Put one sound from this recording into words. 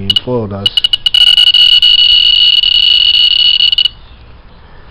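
An electronic device sounds a steady high tone.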